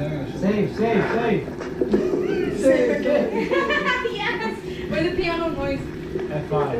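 A group of young men and women laugh together nearby.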